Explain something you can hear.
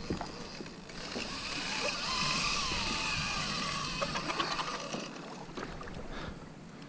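A fishing reel's drag buzzes as line is pulled out.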